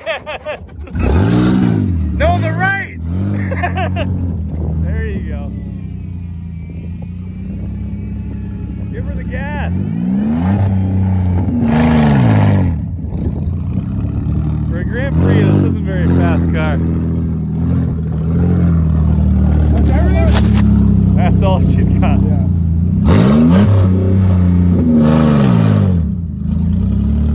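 A car engine roars and revs up and down repeatedly.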